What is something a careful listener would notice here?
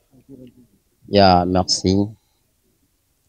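A young man answers close to a microphone.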